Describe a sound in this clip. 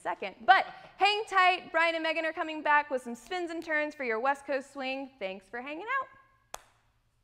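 A woman speaks with animation, close by through a microphone.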